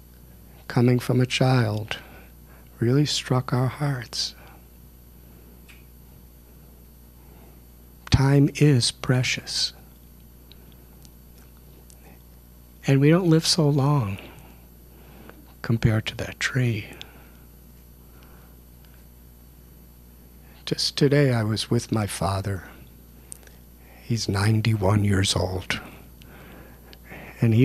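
An older man speaks calmly into a microphone, in short phrases with pauses.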